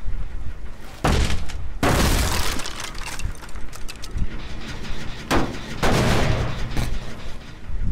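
Wooden boards crack and splinter loudly.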